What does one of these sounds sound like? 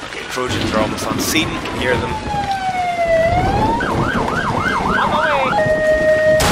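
A police siren wails and sweeps up and down.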